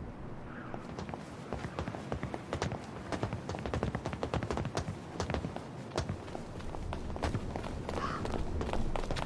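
Footsteps patter quickly on a stone street.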